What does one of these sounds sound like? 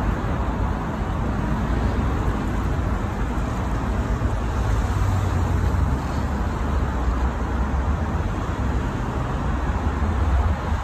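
Cars drive past in busy city traffic, tyres and engines rumbling.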